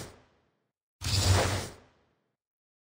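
A card game's sound effect whooshes as a card is played.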